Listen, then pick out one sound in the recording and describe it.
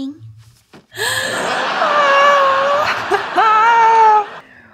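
A young woman squeals loudly with excitement close to a microphone.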